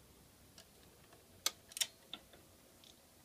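A turntable's control lever clicks under a finger.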